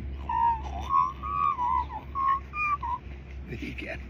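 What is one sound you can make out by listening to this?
A dog whines in high, wavering bursts.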